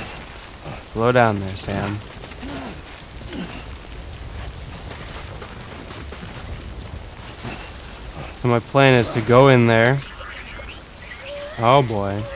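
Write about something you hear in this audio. A young man talks with animation into a close microphone, in short bursts.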